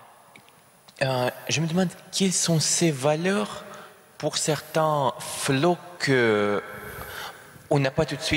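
A young man asks a question into a microphone.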